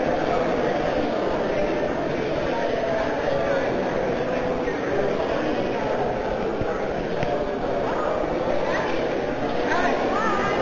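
A crowd of men and women chatter all around in a large echoing room.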